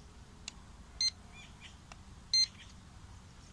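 A remote controller beeps sharply a few times.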